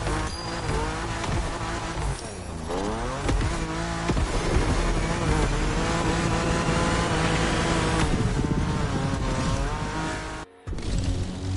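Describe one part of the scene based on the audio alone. A car engine revs hard and climbs through the gears.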